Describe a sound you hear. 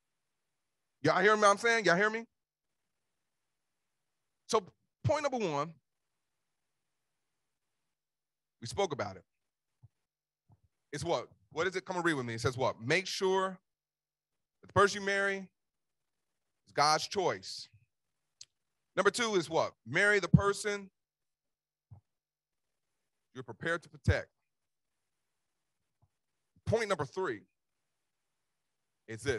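A man preaches with animation into a microphone, pausing often between phrases.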